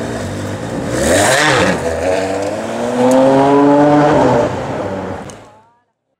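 A V12 Ferrari 599 GTO pulls away and accelerates.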